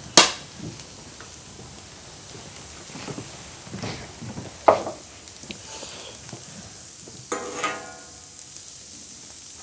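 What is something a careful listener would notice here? Food sizzles softly on a hot griddle.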